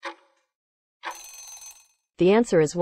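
A buzzer sounds briefly as the timer runs out.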